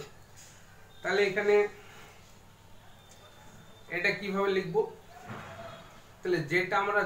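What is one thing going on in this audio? A middle-aged man reads out slowly and clearly into a close microphone, pausing between phrases.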